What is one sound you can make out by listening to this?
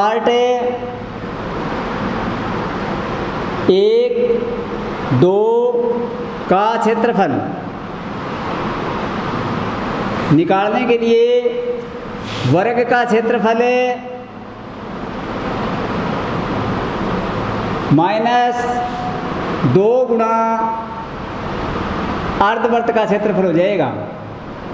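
A young man speaks calmly in short phrases, as if explaining.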